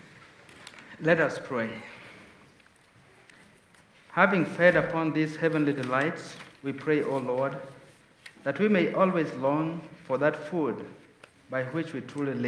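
A man speaks into a microphone in a calm, chanting voice, echoing in a large hall.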